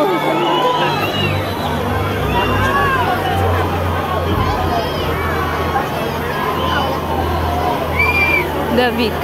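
Deep booming music plays through loud speakers.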